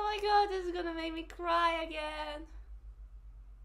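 A young woman speaks brightly through an online call.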